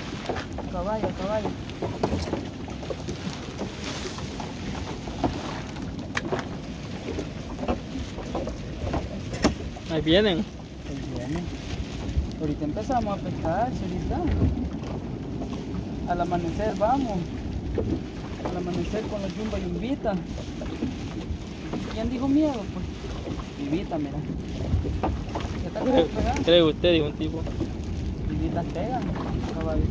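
A wet fishing net rustles and slaps as it is handled.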